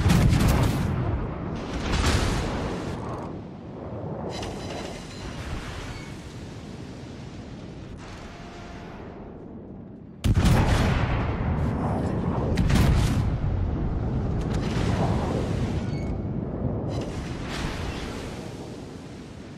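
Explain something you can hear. Shells explode with deep rumbling bursts.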